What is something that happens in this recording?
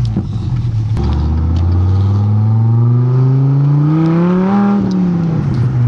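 A sports car engine revs up loudly as the car pulls away and speeds up.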